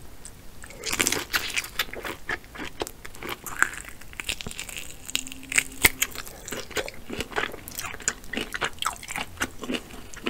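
A woman bites and chews crab meat wetly close to a microphone.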